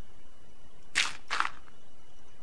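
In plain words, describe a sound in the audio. A block is set down with a soft thud.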